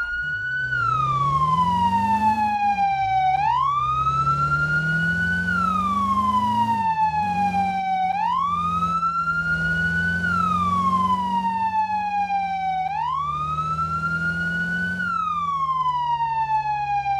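A fire engine siren wails, slowly rising and falling.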